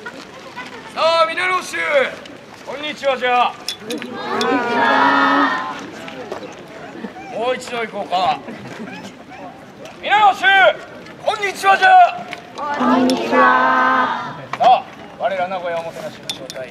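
Men shout loud, drawn-out cries outdoors.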